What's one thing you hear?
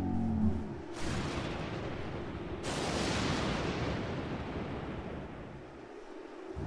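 Thunder cracks sharply and rumbles away.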